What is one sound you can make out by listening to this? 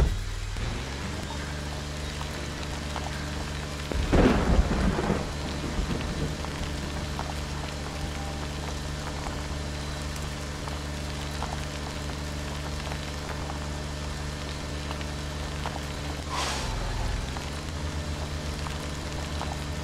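A car engine starts and runs with a steady low hum.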